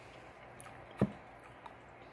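A glass is set down on a plastic surface with a dull knock.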